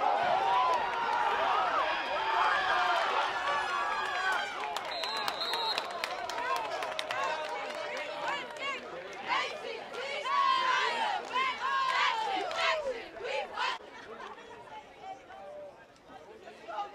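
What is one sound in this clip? A crowd of young men shouts and cheers loudly outdoors.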